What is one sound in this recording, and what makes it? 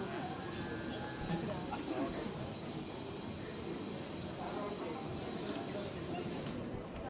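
A crowd of people chatters and murmurs in a large hall.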